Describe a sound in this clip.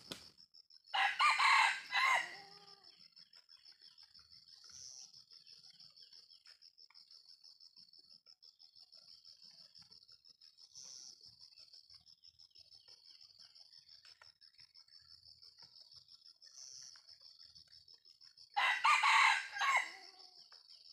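A rooster crows loudly nearby, outdoors.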